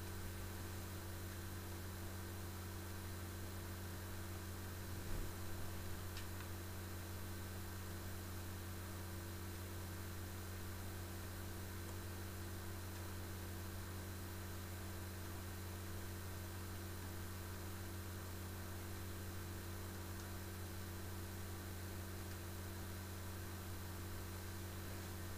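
Video game sounds play through a television speaker.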